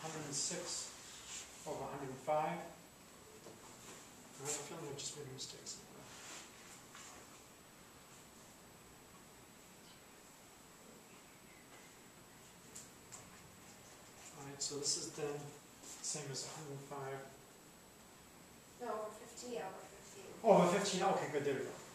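A man lectures calmly, heard close by, with pauses between phrases.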